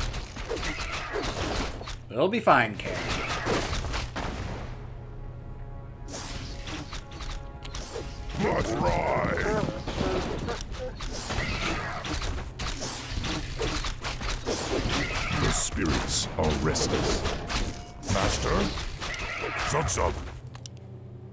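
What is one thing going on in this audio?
Swords and axes clash in a noisy battle.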